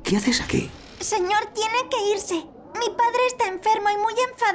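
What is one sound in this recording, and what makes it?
A young girl speaks nervously nearby.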